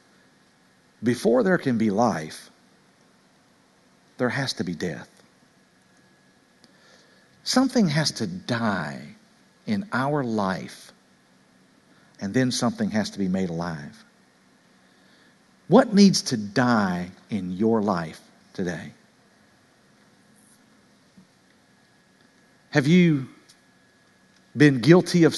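A middle-aged man speaks with animation through a microphone, in short bursts with pauses, in a large echoing hall.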